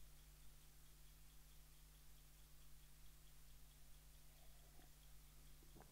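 A man sips a drink from a mug close to a microphone.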